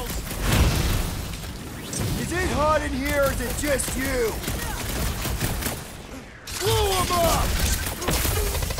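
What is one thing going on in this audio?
Energy blasts explode with booming bursts.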